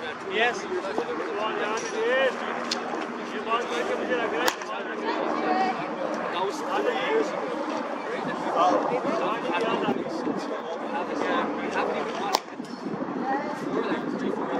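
Several men talk and call out nearby outdoors.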